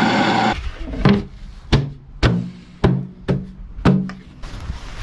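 A plastic lid knocks sharply against a barrel.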